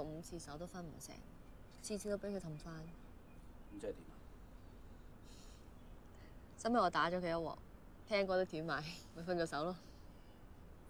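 A young woman speaks calmly and wryly nearby.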